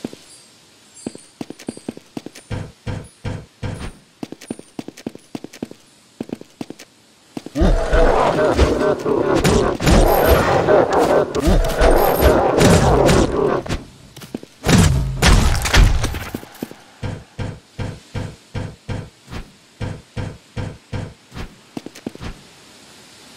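Footsteps fall in a quick rhythm.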